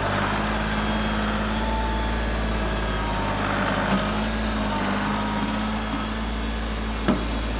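A tractor engine rumbles steadily close by.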